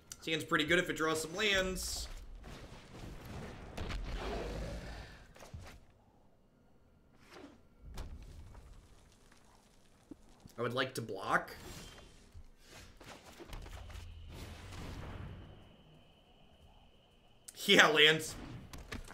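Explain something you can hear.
A man talks into a microphone in short bursts, with animation.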